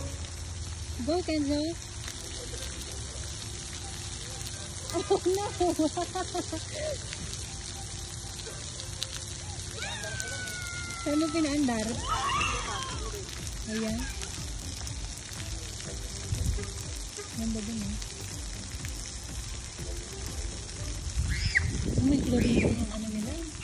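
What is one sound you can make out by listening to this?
A small child babbles and squeals nearby.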